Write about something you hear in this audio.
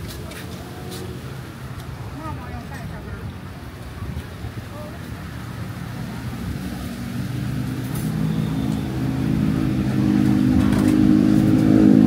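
Flip-flops slap on pavement as people walk.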